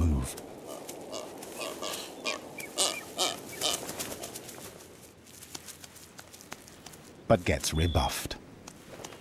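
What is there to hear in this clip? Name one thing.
Seabirds call with short, repeated whistles nearby.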